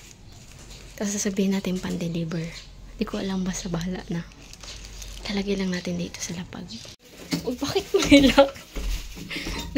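A young woman talks quietly, close by.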